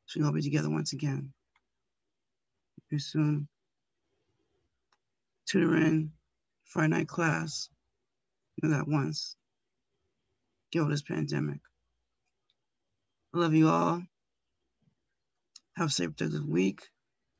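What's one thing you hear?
An elderly woman speaks slowly and calmly in short phrases with pauses, close to a microphone.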